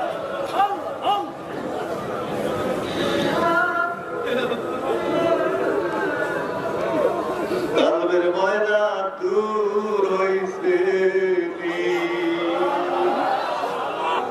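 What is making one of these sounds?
A man chants and sings loudly into a microphone, heard through loudspeakers with echo.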